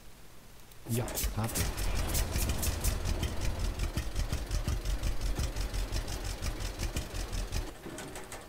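A tractor engine idles with a steady chugging rumble.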